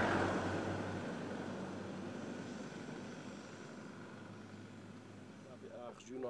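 A car engine rumbles as it drives away and fades.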